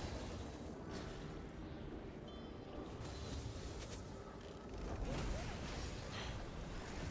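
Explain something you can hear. Magic spells whoosh and burst in a video game fight.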